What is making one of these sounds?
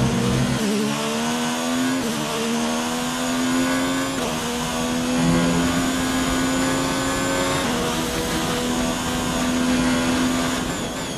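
A racing car engine screams at high revs, climbing in pitch and dropping briefly at each gear change.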